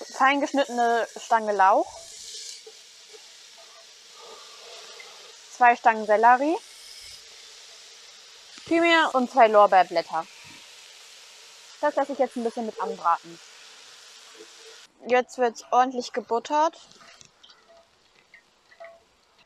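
Vegetables sizzle in a hot pot.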